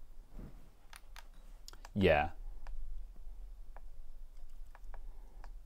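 Buttons on a steering wheel click.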